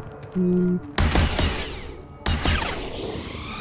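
A blaster gun fires sharp, crackling bursts.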